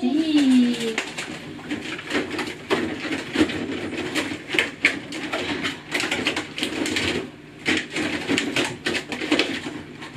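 Packages and bottles rustle and clink as a fridge is rummaged.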